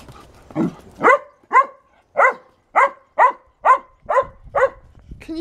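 Small dogs bark in sharp, high yaps.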